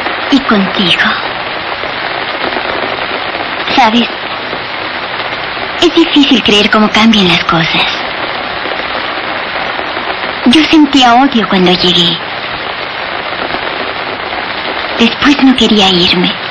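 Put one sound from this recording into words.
A young woman speaks softly and tenderly, close by.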